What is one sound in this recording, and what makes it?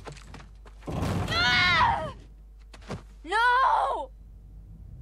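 A young woman shouts in alarm.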